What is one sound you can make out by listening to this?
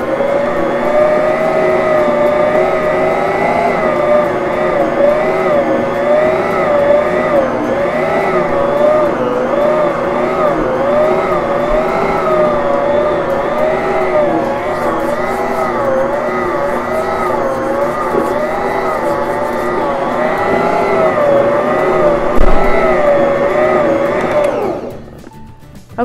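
A stand mixer motor whirs and strains as it kneads dough, its pitch wavering.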